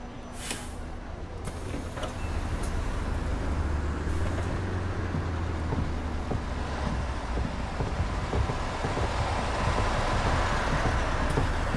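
A bus engine idles with a low, steady rumble.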